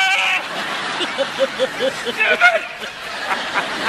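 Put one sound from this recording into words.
A woman laughs with delight close by.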